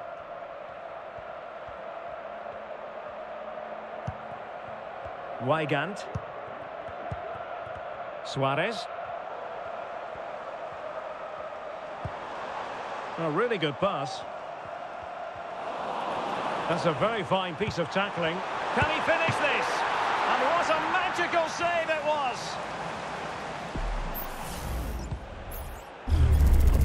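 A large crowd murmurs and cheers steadily in a big stadium, swelling louder for a while.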